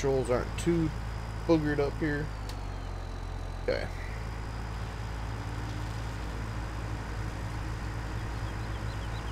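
A mower engine drones steadily.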